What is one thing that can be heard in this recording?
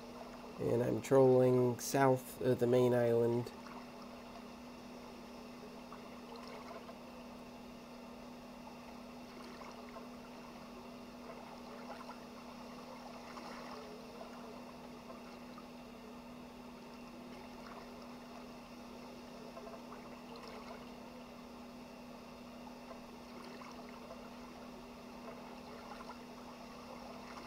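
Waves wash steadily against a moving boat.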